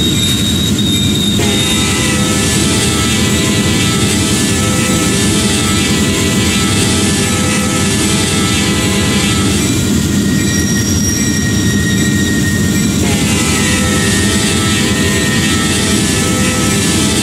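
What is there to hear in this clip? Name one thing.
Train wheels clatter along the rails.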